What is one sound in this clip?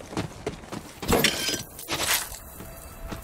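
A metal chest lid clanks open.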